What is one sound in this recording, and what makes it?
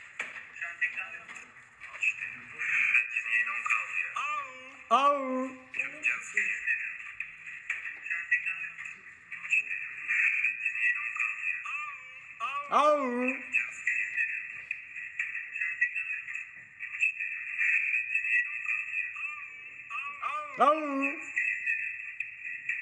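A young man talks casually and close by, heard through a phone.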